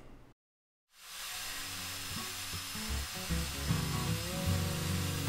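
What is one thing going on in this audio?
A belt sander whirs against metal.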